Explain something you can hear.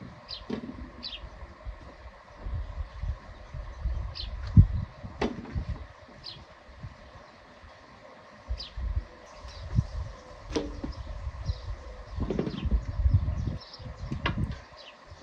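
Hands sort fruit with soft knocks against metal bowls.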